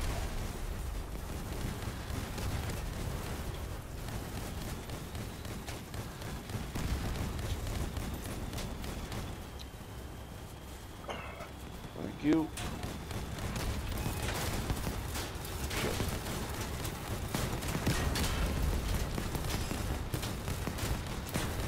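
A heavy armoured vehicle's engine rumbles steadily.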